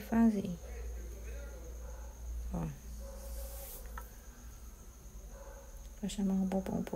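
Fingers softly rustle and handle a furry hair accessory.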